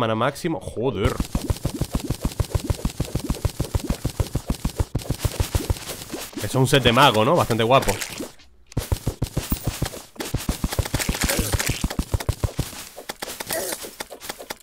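A pickaxe chips at rock in quick, even strokes.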